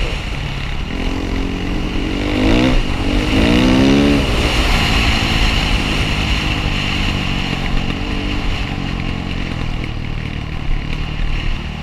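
A dirt bike engine revs loudly close by, rising and falling in pitch.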